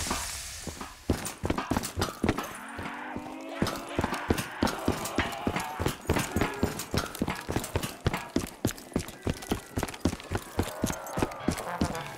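Quick footsteps clang on metal floors and stairs.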